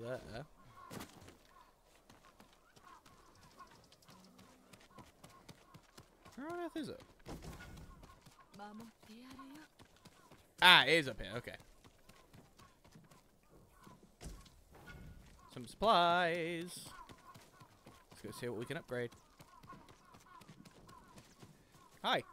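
Footsteps run over stone paving.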